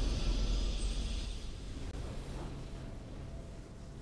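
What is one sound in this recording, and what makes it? A triumphant game fanfare plays and slowly fades.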